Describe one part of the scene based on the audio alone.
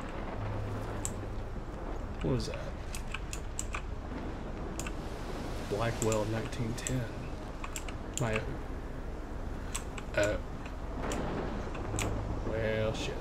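Strong wind howls and roars steadily.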